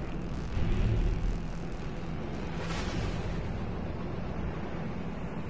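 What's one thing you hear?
A spaceship engine hums and roars steadily.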